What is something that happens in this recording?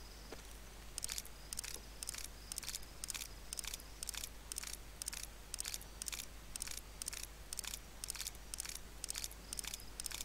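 Cartridges click one after another into a magazine.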